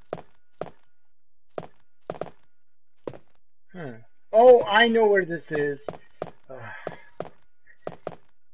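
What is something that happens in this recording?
Footsteps knock slowly on a wooden floor.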